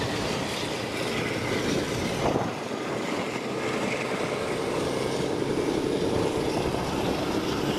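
A steam locomotive chuffs in the distance.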